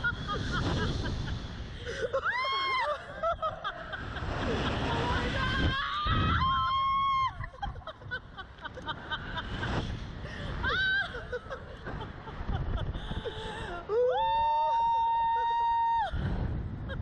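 A man shouts and laughs loudly up close.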